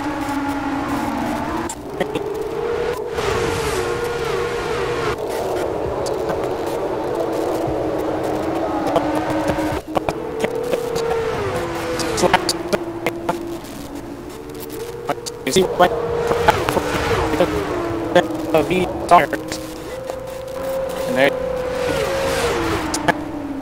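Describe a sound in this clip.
Racing car engines whine loudly, shifting gears as they speed past.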